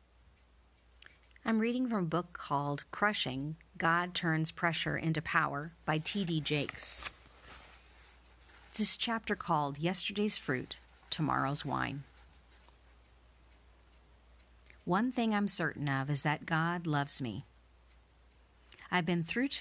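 A woman speaks calmly and warmly into a close microphone.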